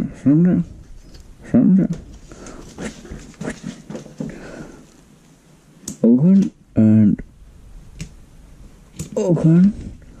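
A fabric bag rustles as it is handled.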